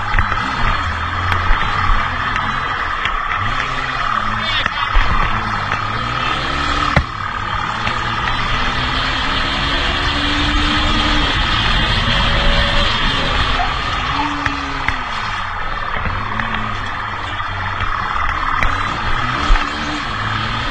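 A motorcycle engine roars and revs close by.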